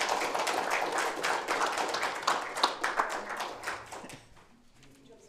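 A crowd claps and cheers in a large room.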